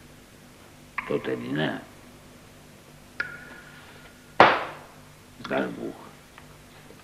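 A younger man speaks quietly, close by.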